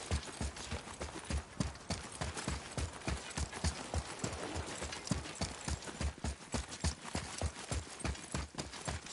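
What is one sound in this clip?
Heavy footsteps thud quickly on a hard wet floor.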